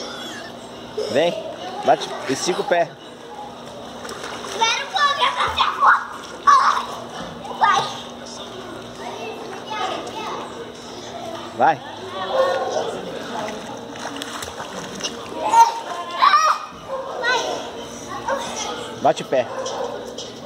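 Children's voices call out nearby, echoing around the water.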